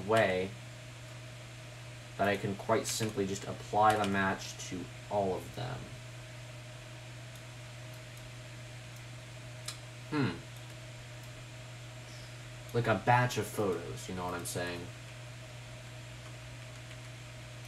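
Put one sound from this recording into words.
A computer mouse clicks softly.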